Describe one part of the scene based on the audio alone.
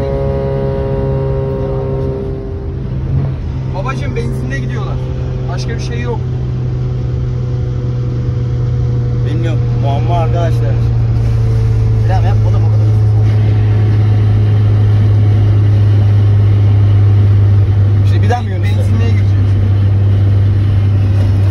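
A car engine drones steadily at speed, its note rising as the car accelerates.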